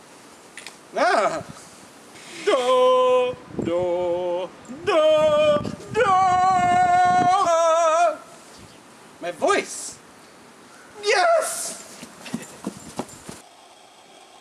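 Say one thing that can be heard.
A man sings loudly and dramatically outdoors.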